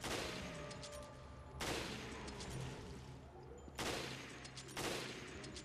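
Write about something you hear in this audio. Loud gunshots boom one after another with a ringing echo.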